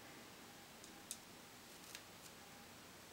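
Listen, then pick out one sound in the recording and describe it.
Wooden paintbrush handles click softly against each other.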